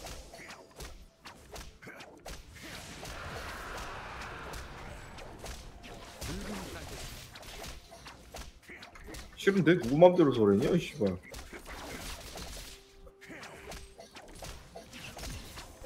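Video game fight effects clash and crackle in quick bursts.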